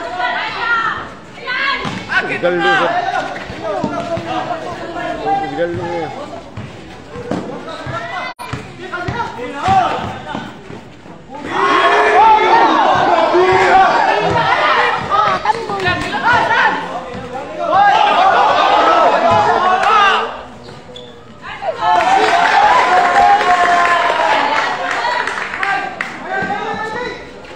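Young men shout and call out across a large echoing covered court.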